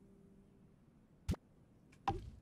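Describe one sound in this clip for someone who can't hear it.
A short interface click sounds.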